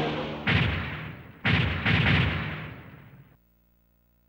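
A machine's engine roars loudly.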